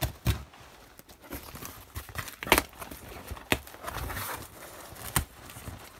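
Cardboard thumps and taps sharply under handling.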